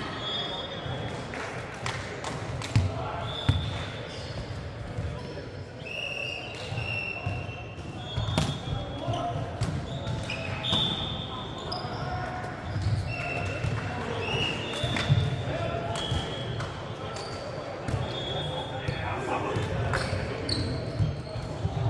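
Young men call out and chatter during play.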